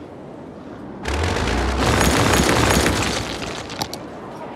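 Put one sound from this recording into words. A building collapses with a loud rumbling crash.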